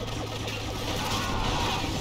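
A large explosion booms and crackles.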